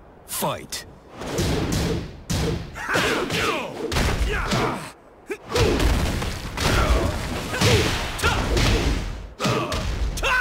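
Punches and kicks land with heavy, rapid thuds.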